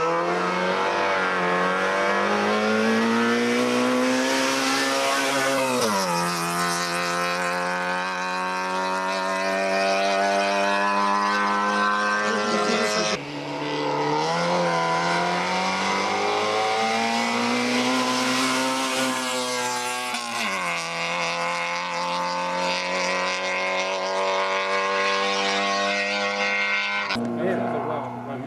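A rally car engine revs hard as it climbs toward the listener, then drops in pitch as it races past and fades up the road.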